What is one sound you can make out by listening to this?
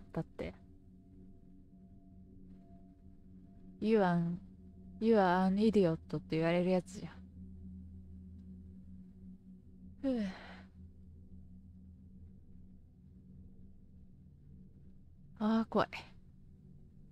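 A young woman speaks in short, animated bursts close to a microphone.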